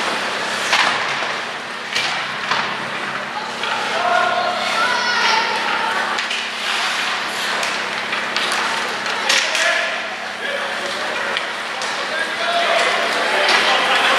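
Ice hockey sticks clack against a puck and the ice.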